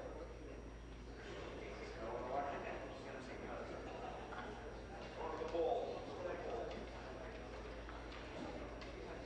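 A man speaks steadily through a microphone.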